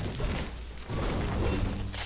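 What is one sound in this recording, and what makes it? A tree crashes and breaks apart with a burst.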